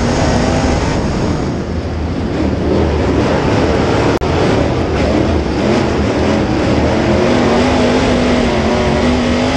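Tyres rumble and scrape over a dirt track.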